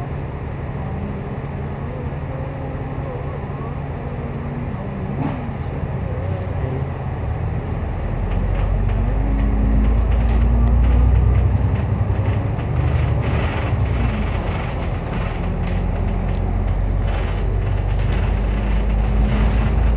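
City traffic passes nearby.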